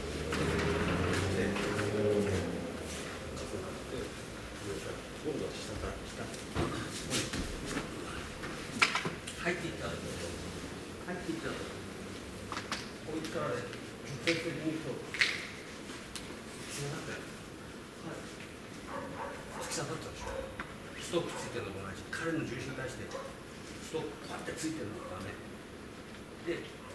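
An elderly man speaks calmly, explaining.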